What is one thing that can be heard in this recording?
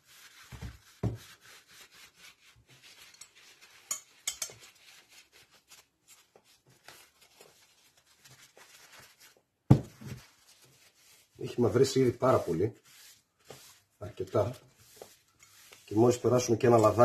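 A hand tool knocks and scrapes against a work surface.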